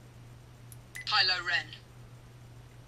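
A lightsaber hilt plays a short electronic sound effect from its small speaker.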